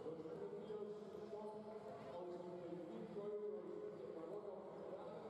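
Basketballs bounce on a hard court in a large echoing hall.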